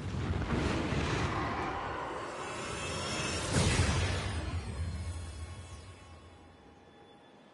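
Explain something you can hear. A powerful blast roars with a deep rumble and slowly fades away.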